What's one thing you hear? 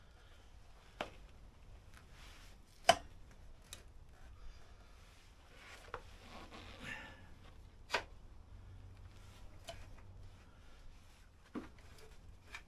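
Metal parts click and clank as a man works on a motorcycle wheel.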